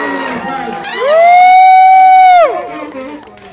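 A trumpet holds a long high note.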